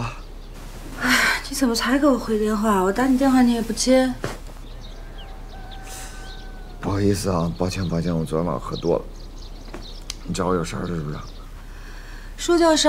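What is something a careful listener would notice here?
A young woman talks on the phone, sounding annoyed and reproachful.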